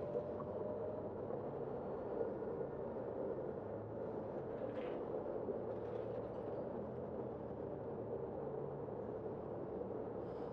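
Cars drive past across a street nearby with a steady hum of tyres and engines.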